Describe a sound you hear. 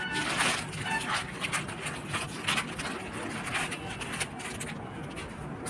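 A plastic mailer bag crinkles and rustles as hands tear it open.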